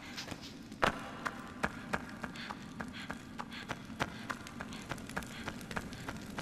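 Footsteps clatter quickly on a hard stone floor.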